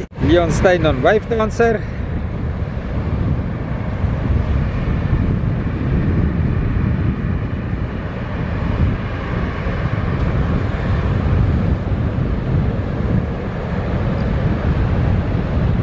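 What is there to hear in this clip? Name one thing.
Waves roll in and break on the shore.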